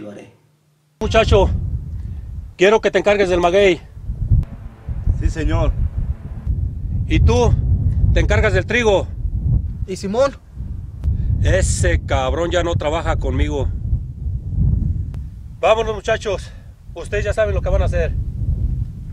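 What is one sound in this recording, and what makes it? A man speaks outdoors in wind.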